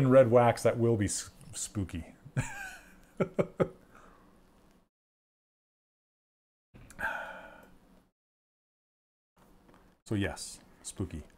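A middle-aged man speaks casually into a microphone, in short bursts with pauses.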